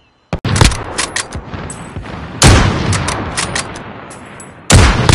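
Rifle shots boom loudly, each followed by a rolling echo.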